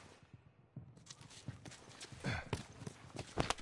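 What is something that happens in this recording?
Heavy blows and grunts break out in a close scuffle.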